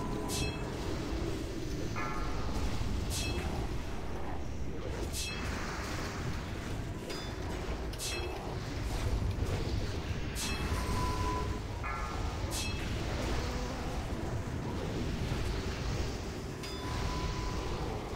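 Bright chimes ring out again and again.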